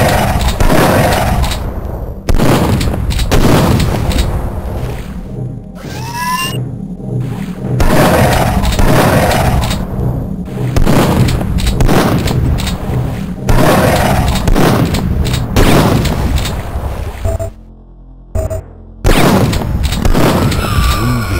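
A pump-action shotgun fires in sharp blasts.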